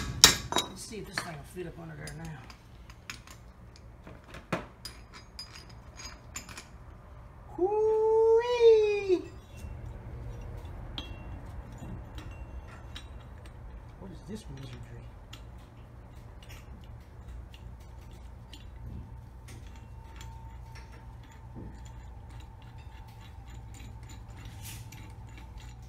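Metal tool parts clink and knock together.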